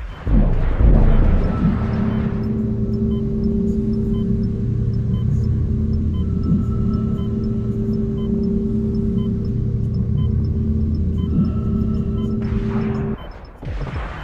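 Spacecraft thrusters roar with a deep, steady hum, then cut off.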